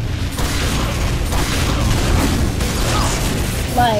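Gunfire and explosions boom in a loud firefight.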